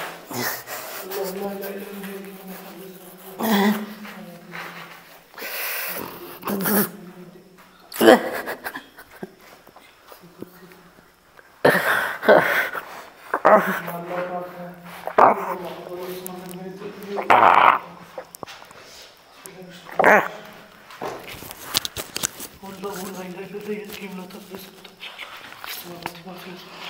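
A young man groans and cries out in pain close by.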